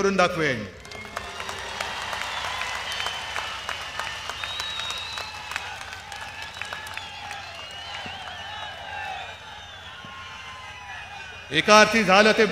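A large crowd cheers and shouts.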